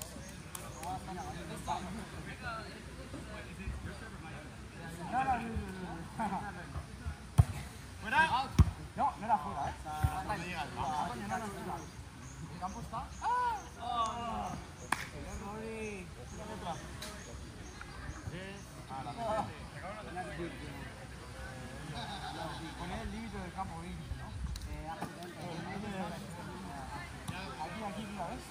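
Young men and women call out to each other outdoors during a ball game.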